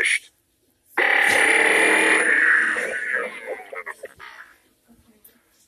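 A toy gauntlet plays loud electronic sound effects from a small speaker.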